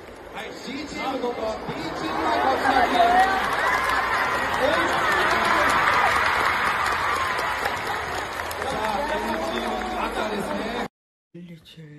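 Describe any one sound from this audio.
A large crowd screams and cheers loudly.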